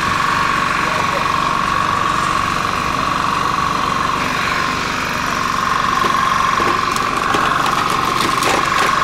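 A portable generator engine drones steadily nearby.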